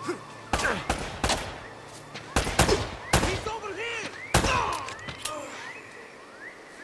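Bullets ricochet with whining, zipping sounds.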